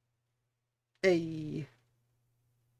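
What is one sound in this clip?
A man close by briefly exclaims out loud.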